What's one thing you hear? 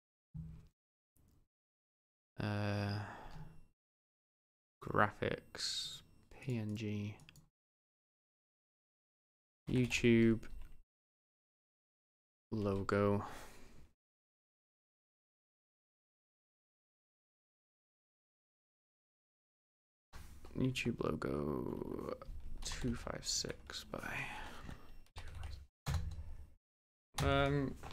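A young man talks calmly and close to a microphone, in short bursts with pauses.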